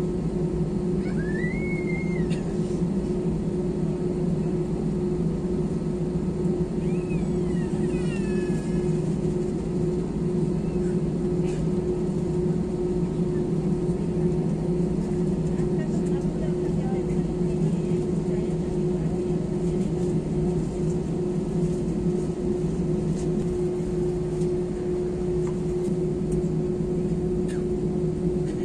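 Jet airliner engines hum with a steady whine, heard from inside the cabin while taxiing.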